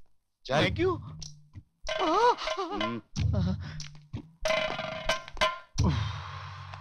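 A man speaks loudly and with animation close by.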